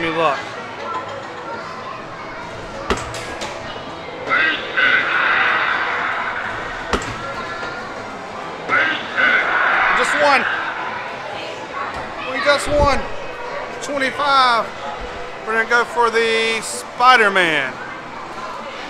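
An arcade game plays electronic beeps and jingles nearby.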